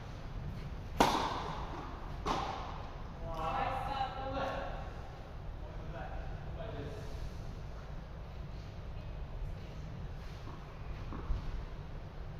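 A tennis racket strikes a ball with a sharp pop in a large echoing hall.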